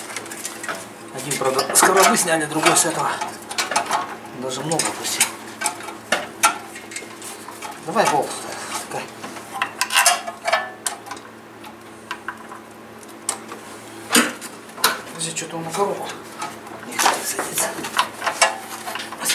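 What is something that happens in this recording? Metal tools clink and knock against an engine.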